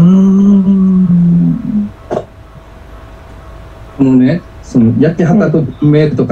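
An older woman speaks cheerfully over an online call.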